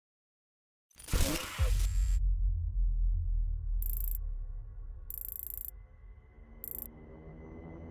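A deep electronic whoosh swells into low, rumbling menu music.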